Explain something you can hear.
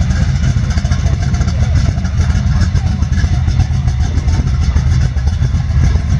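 A car engine idles close by with a deep, throbbing exhaust rumble.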